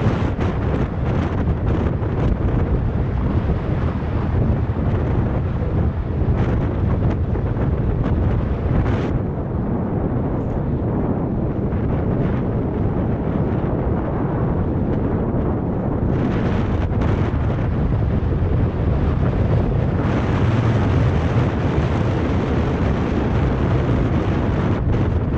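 Small wheels rumble on a rough road.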